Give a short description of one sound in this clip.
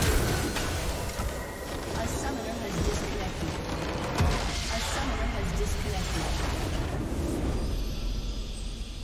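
A loud magical explosion booms and crackles.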